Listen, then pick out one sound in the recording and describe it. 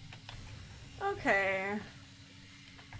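A young woman speaks briefly and softly into a nearby microphone.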